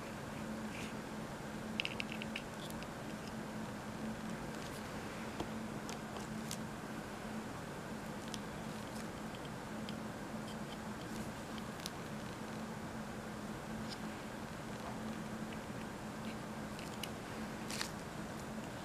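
Wires click softly as they are pushed into a board.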